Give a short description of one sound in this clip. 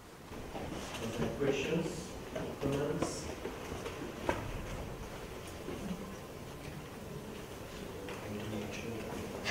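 A man speaks quietly from further away.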